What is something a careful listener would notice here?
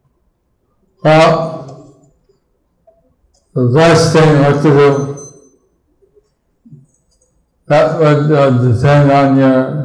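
A middle-aged man sings in long phrases into a microphone, with pauses between them.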